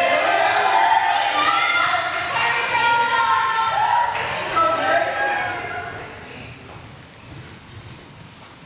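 Dancers' feet patter and shuffle across a wooden floor in a large echoing hall.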